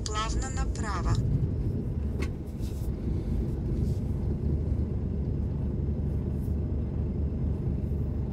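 Cars idle in city traffic with a low, steady rumble.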